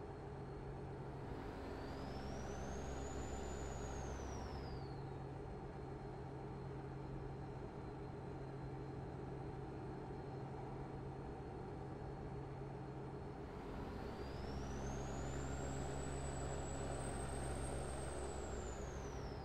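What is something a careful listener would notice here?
Tyres roll over the road surface with a steady rumble.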